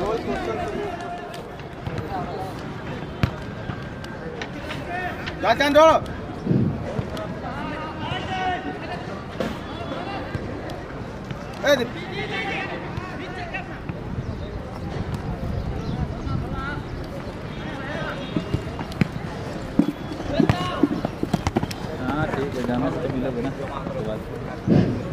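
A crowd of spectators chatters and calls out from the sidelines outdoors.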